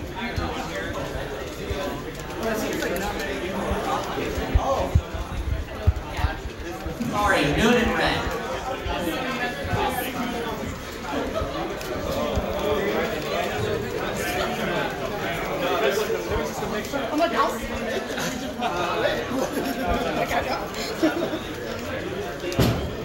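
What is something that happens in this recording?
Fighting game sound effects of hits and whooshes play through a television speaker.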